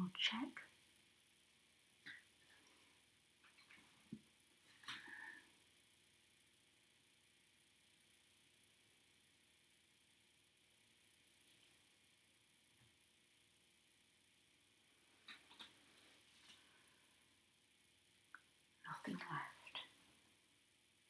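A woman speaks softly nearby.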